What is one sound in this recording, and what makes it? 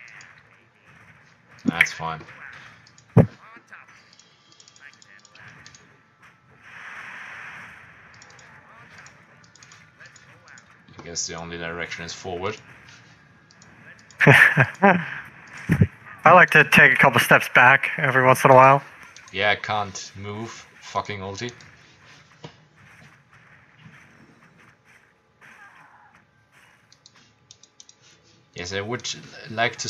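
Magic spells crackle and weapons clash in a video game battle.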